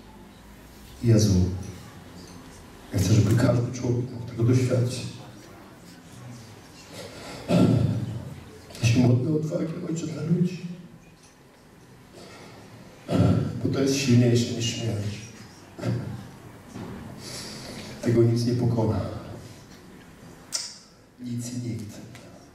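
A middle-aged man speaks loudly and fervently through a microphone in an echoing hall, pausing between phrases.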